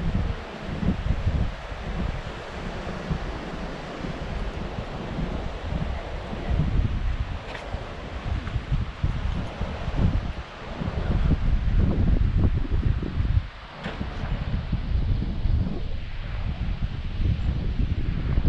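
Wind blows across the microphone outdoors in gusts.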